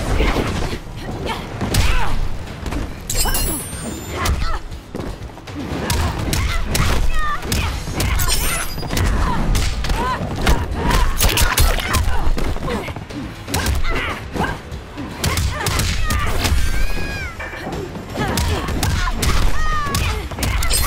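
A fighter grunts and cries out with each blow.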